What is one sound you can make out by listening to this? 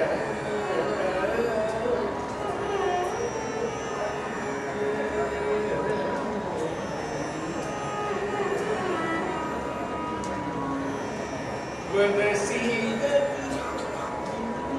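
A man sings into a microphone in a melodic classical style.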